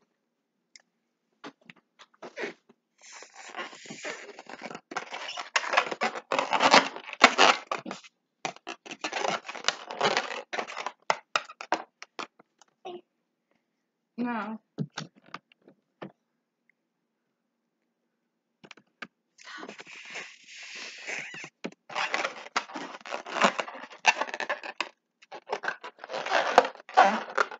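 Balloon rubber squeaks and rustles between fingers.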